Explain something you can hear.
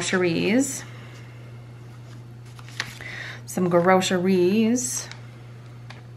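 Sheets of sticker paper rustle and slide.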